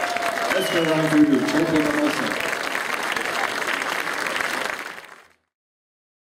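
A rock band plays live with electric guitars and drums.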